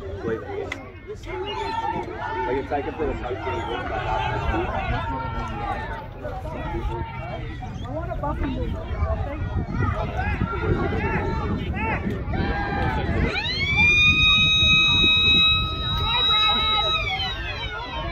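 Spectators on the sideline shout and cheer.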